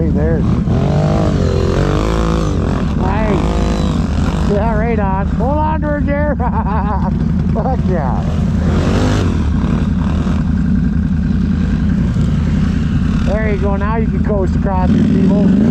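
Another quad bike engine revs loudly as it passes close by.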